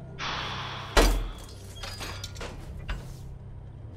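A metal bar clanks against a padlock.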